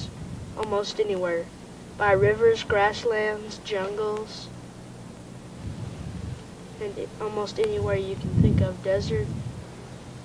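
A young girl talks nearby in a lively, high voice.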